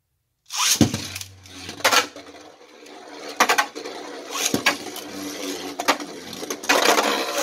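Metal spinning tops whir and scrape around a plastic stadium.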